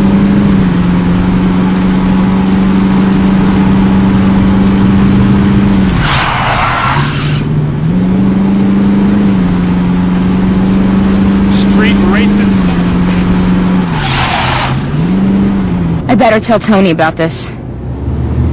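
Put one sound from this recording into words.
A car engine hums steadily and shifts pitch as the car drives.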